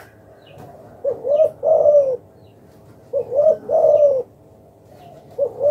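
A dove coos in soft, low, repeated phrases close by.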